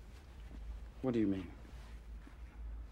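A young man speaks softly, close by.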